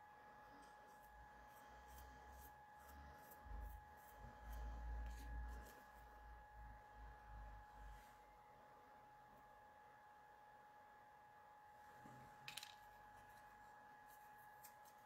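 Fingers rustle and crinkle a small paper flower, close by.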